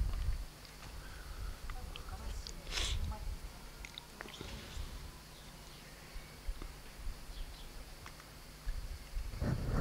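Fingers rustle through hair close to a microphone.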